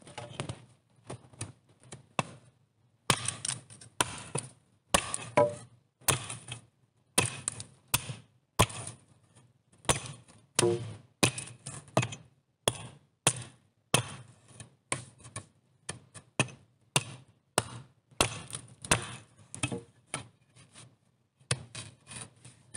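An axe head knocks a wooden stake into the ground with repeated blows.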